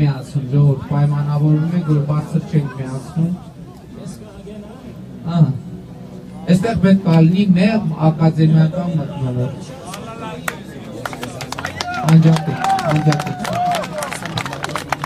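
A man speaks loudly into a microphone, heard through a loudspeaker.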